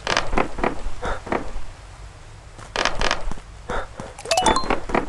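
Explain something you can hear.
Short bouncy game sound effects play as a character hops along.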